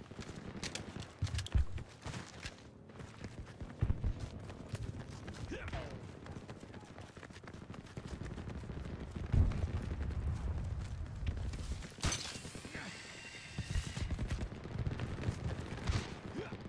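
Running footsteps thud steadily on hard ground.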